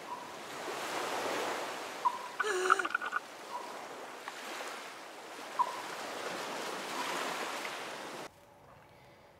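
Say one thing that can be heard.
Water splashes softly.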